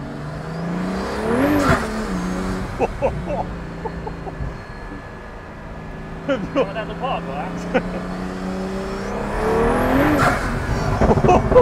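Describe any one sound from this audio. A sports car roars past at speed, rising and then falling in pitch.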